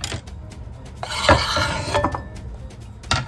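Food scrapes and slides off a board with a rustling swish.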